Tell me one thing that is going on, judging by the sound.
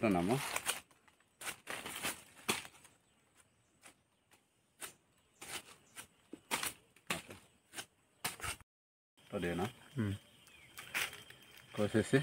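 A knife slices through the tough skin of a pineapple with short scraping cuts.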